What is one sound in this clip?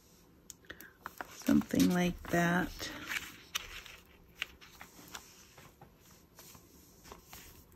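A thin plastic sheet crinkles and rustles as it is handled.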